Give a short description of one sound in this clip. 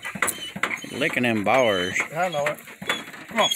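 A calf bawls nearby.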